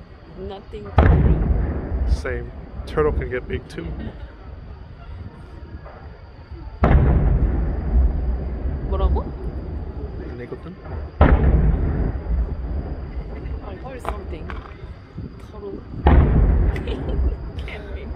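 Fireworks burst with loud booms that echo and rumble away.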